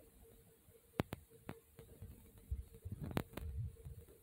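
Soft electronic button beeps sound now and then.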